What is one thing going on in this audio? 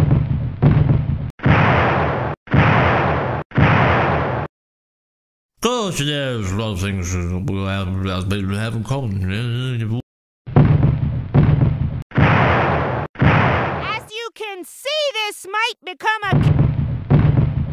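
Gunfire from a video game bursts loudly in rapid rounds.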